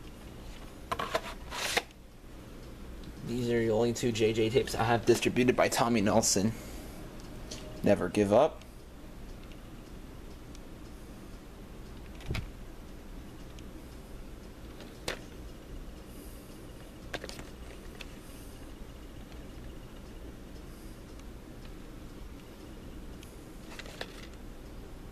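Plastic tape cases clack and rattle as they are handled.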